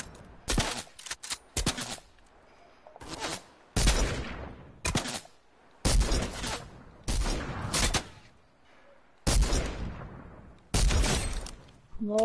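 Gunshots fire in loud, quick bursts.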